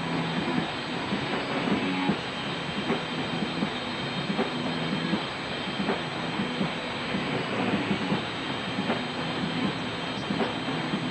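A distorted bass guitar plays loudly through amplifiers.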